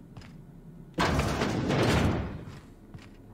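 A heavy double door opens.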